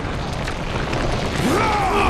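A giant man groans deeply in pain.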